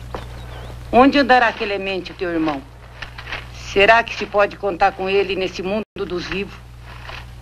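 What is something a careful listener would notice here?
An elderly woman speaks softly and sadly, close by.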